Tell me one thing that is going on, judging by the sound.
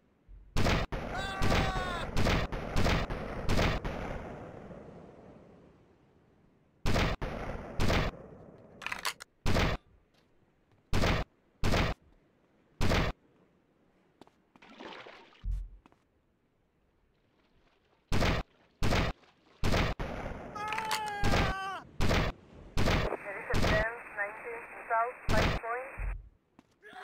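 Men scream as they are hit.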